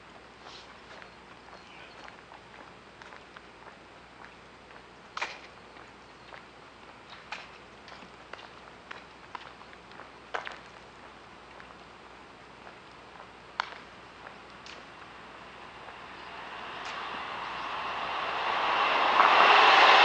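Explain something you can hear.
Footsteps tap on asphalt at a walking pace.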